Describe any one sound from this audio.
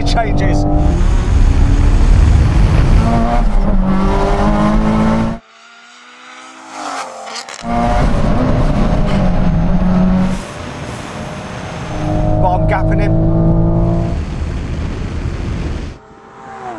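A car accelerates hard past, its engine roaring.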